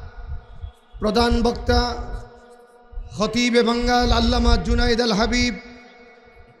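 A man chants loudly in a drawn-out, singing voice through a loudspeaker, echoing outdoors.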